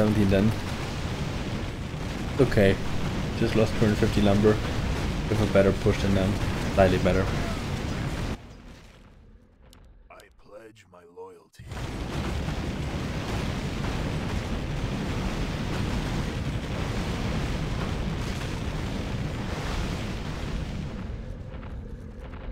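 Weapons clash and spells burst in a busy battle.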